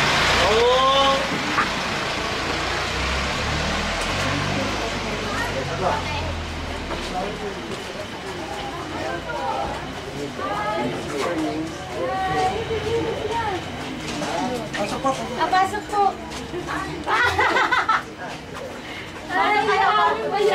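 A crowd of young men and women talk and call out close by.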